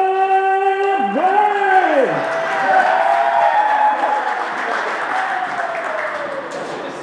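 A man announces loudly through a microphone and loudspeaker.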